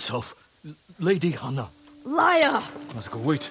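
A woman shouts angrily.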